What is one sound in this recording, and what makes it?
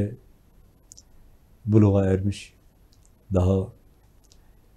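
A middle-aged man speaks calmly and closely into a microphone, in short phrases.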